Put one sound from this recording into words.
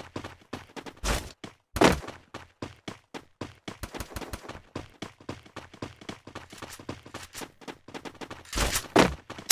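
Footsteps run over the ground.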